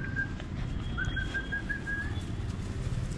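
A puppy whimpers and squeaks softly close by.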